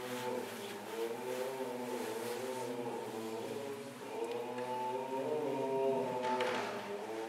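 An elderly man chants in a slow, sung voice, echoing in a large hall.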